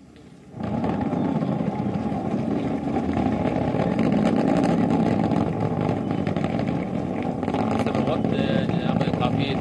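A rocket engine roars loudly and steadily.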